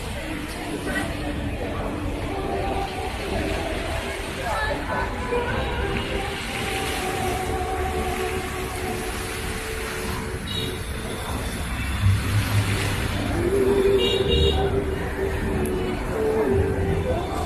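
A crowd of young people chatters and murmurs outdoors.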